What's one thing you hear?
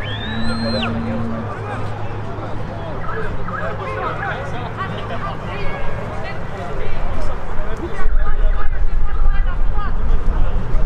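Players shout and call to each other across an open field outdoors.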